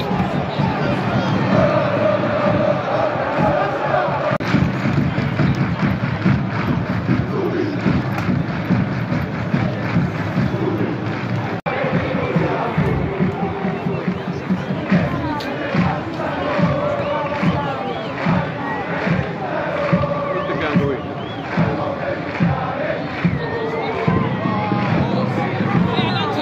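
A large crowd of fans chants and sings loudly together in a big open stadium.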